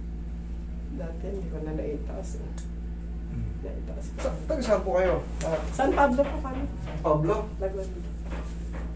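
A middle-aged woman talks close by, with animation.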